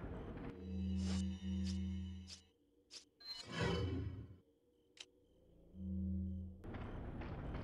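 Game menu tones beep as selections change.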